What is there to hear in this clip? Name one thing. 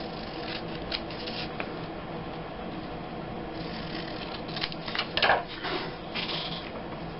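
Scissors snip through paper close by.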